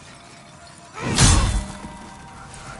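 A heavy blow lands with a loud crash.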